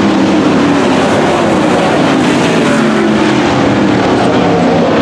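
Race car engines roar loudly around a track outdoors.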